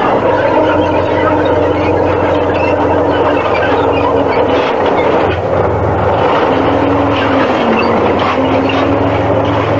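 Tank tracks clatter and squeal as the tank rolls past.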